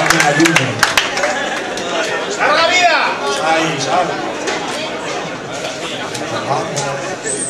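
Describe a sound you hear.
A crowd cheers and whistles after the song.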